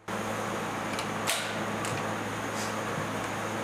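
An air rifle fires with short sharp cracks.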